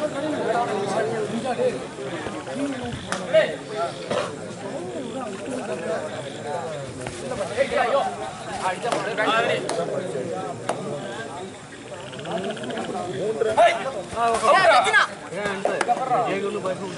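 A young man chants rapidly.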